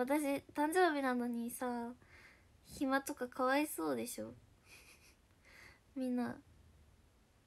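A young woman speaks close to a microphone in a high, animated voice.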